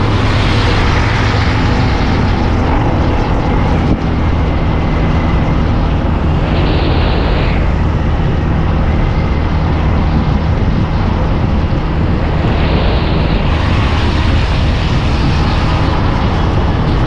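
Wind rushes loudly past, outdoors.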